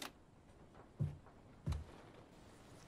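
Bodies thump onto a wooden floor.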